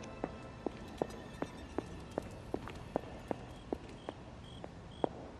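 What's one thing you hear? Footsteps thud quickly and evenly on a wooden floor.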